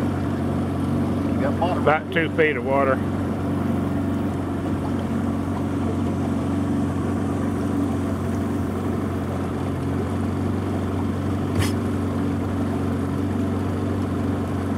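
A boat motor hums steadily.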